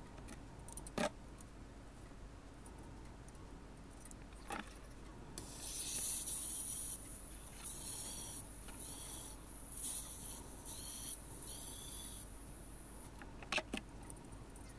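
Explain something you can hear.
Metal tools clink sharply now and then.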